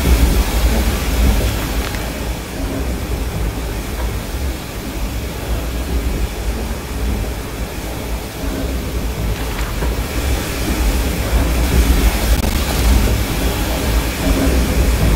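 A deep mechanical rumble drones steadily.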